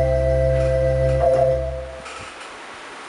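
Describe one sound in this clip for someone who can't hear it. An electronic keyboard plays a sustained chord.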